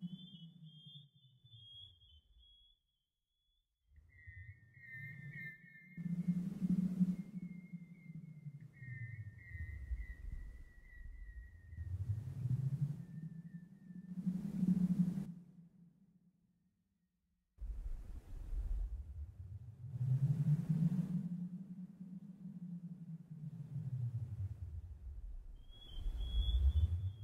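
Electronic music plays with a deep bass that slowly sweeps up and down.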